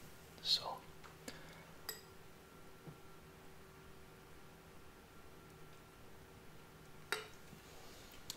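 Liquid pours from a jar into a small glass.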